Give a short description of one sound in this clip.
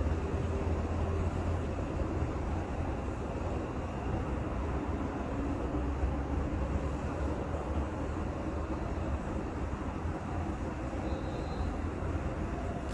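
A stadium crowd roars steadily through a television's speakers.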